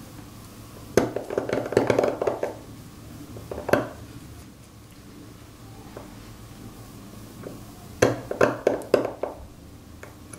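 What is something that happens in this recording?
A carving knife scrapes and chips at a stone seal in short bursts.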